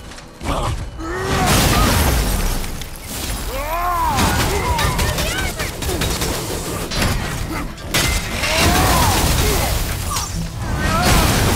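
A man grunts and shouts with effort.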